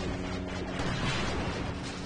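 A loud energy beam blasts and explodes.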